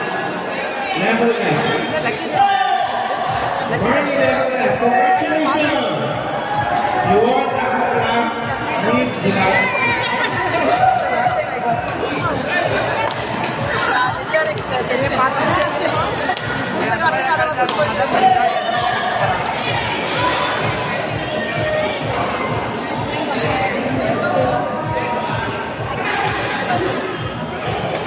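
Badminton rackets strike a shuttlecock in a rally.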